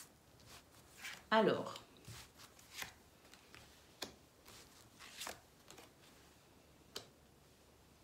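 A card slides across a cloth surface.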